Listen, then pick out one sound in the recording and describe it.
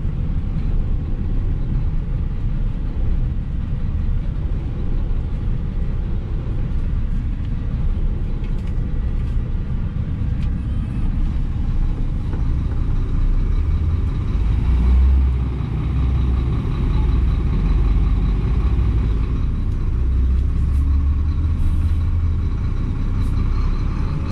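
A truck's diesel engine idles with a low, steady rumble.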